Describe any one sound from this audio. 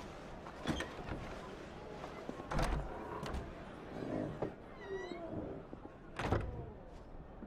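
Knocks sound on a wooden door.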